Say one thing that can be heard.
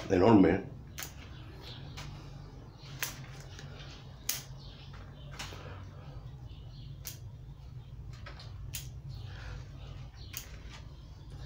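Small scissors snip sharply at leafy twigs.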